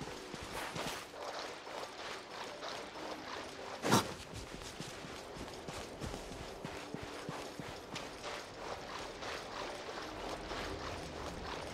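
Water splashes under quick running steps.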